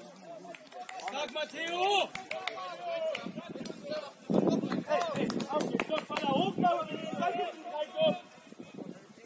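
Young men shout to each other across an open field, at a distance.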